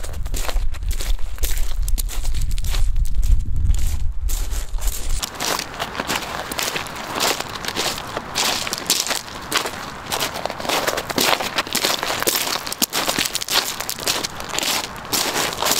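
Boots crunch on loose pebbles and snow with each step.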